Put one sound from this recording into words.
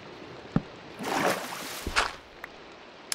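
A flint and steel strikes with a sharp scrape.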